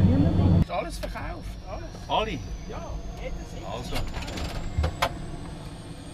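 Switches click in a cockpit.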